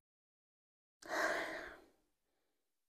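A young woman sniffles and sobs quietly.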